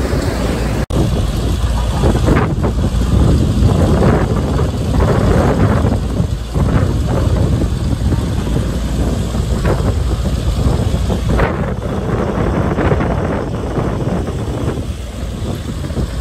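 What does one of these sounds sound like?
A loader's engine revs as it drives across mud.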